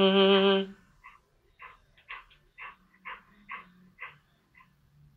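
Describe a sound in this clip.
A dog pants softly.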